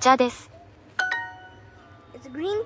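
A short, bright chime rings out.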